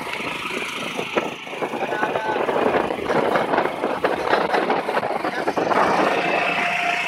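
A rice planting machine's engine runs and rattles close by.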